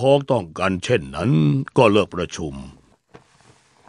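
A middle-aged man speaks firmly and loudly.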